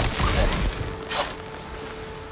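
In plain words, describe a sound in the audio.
Electricity crackles and zaps sharply.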